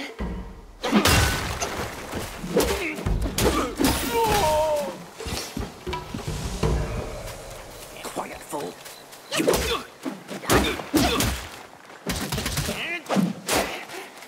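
A sword clangs and slashes in a fight.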